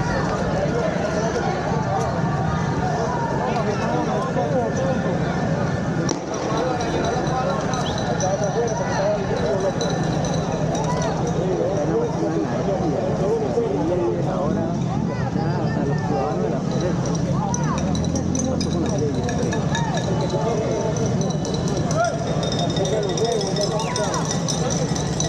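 A crowd of people chatters outdoors.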